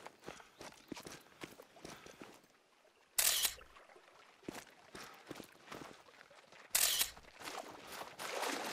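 Small waves lap gently at a pebbly shore.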